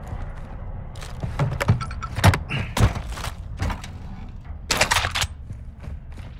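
Metal gear clatters and clicks as items are picked up.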